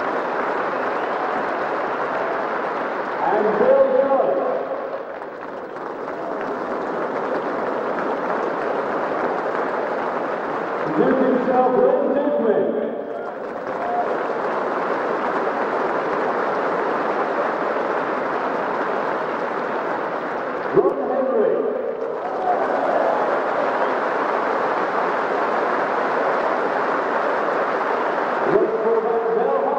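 A large crowd applauds steadily outdoors.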